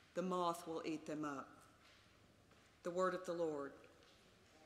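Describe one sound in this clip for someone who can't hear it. A middle-aged woman reads aloud calmly through a microphone in a large echoing hall.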